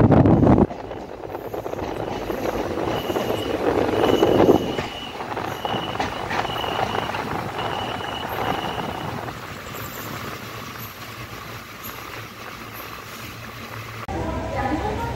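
A passenger train rolls along the tracks.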